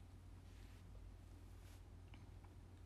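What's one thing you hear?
A young woman breathes softly close to the microphone.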